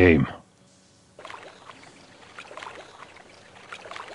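Water sloshes softly around wading legs.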